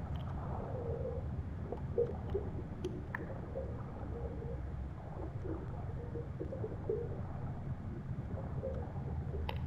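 Water rumbles low and muffled all around.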